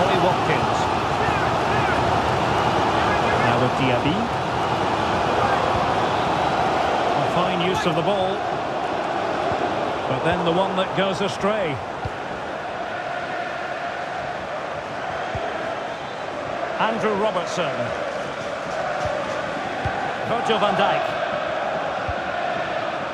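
A large stadium crowd roars and chants steadily.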